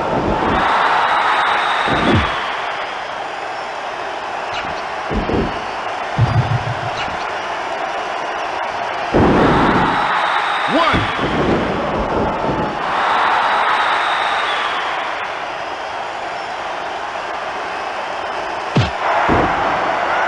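A game crowd cheers loudly and steadily in a large arena.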